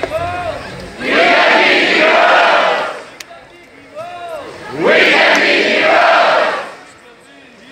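A large crowd cheers and roars in loud bursts.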